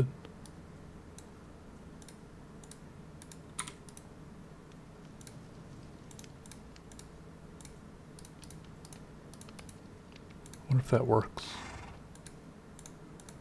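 Soft game menu clicks tick now and then as items are moved.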